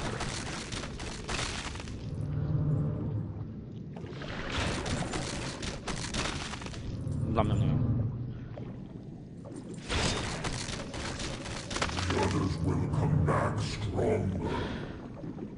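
A shark's jaws crunch and thrash as it bites.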